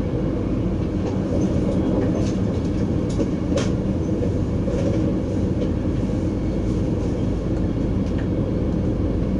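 Wheels click and clack over rail joints.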